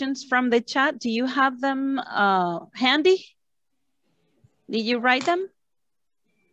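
A woman speaks clearly through an online call, pausing between phrases.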